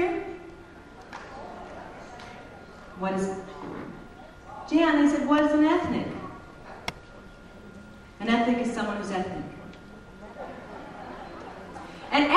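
A woman sings into a microphone in a large hall.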